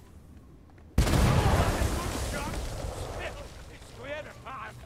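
A cannon fires with a loud boom that rumbles and slowly fades.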